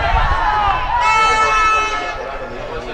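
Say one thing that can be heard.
A referee's whistle blows once, long and shrill.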